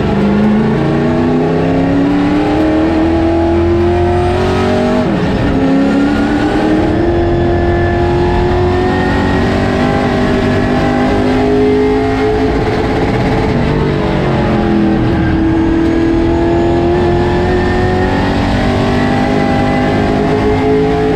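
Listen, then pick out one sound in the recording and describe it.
A race car engine roars loudly from inside the cabin, its pitch climbing through each gear and dropping at each shift.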